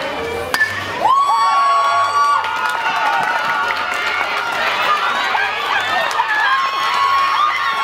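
A crowd of spectators cheers and shouts outdoors.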